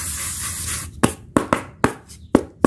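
Styrofoam pieces knock lightly against each other.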